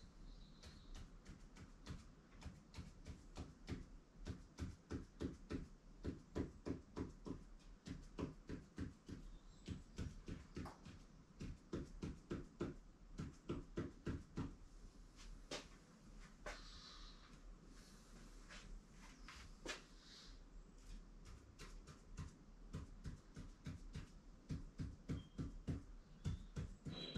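A pen taps and scratches quickly as marks are written, close by.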